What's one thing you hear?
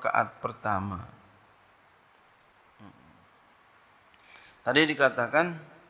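A man chants in a melodic voice through a microphone, with pauses.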